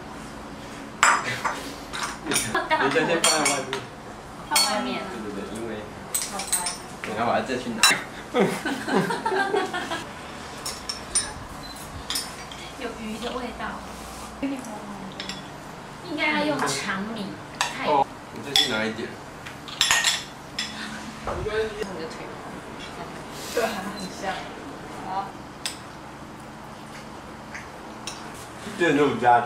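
Women talk and chatter nearby.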